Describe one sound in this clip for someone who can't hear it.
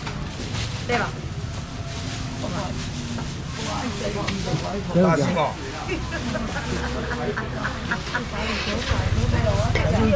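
A man talks with animation nearby.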